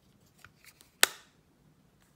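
A plastic compact case snaps shut with a sharp click.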